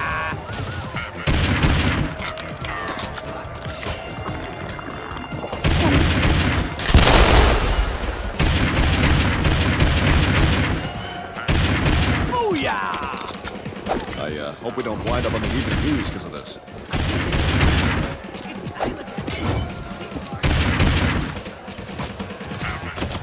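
Gunshots ring out in rapid bursts.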